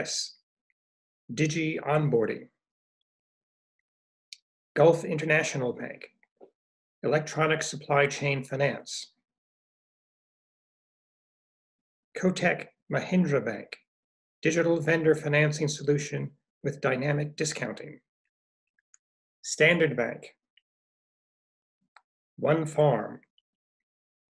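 An older man speaks calmly in short phrases through a computer microphone, with pauses between them.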